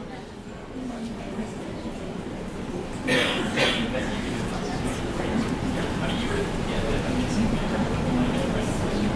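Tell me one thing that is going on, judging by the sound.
A young man speaks calmly into a microphone.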